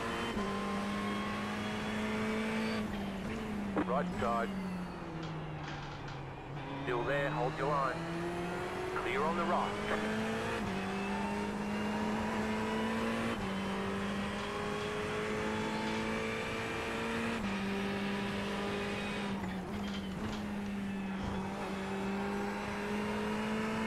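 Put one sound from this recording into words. A racing car engine roars steadily, dropping in pitch through gear changes and braking.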